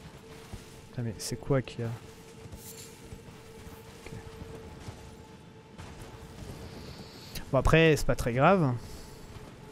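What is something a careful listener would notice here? A horse snorts and whinnies.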